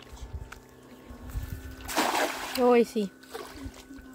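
A fishing net splashes down onto water.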